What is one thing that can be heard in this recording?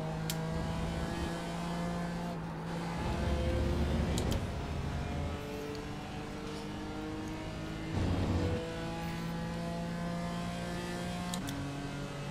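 A racing car engine roars at high revs, rising in pitch and dropping with each gear change.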